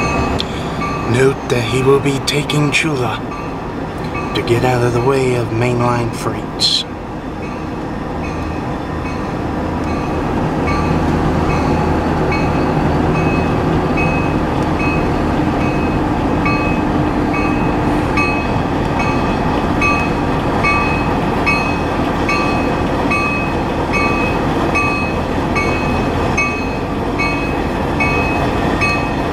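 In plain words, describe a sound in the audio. A car drives steadily along a road with tyres humming.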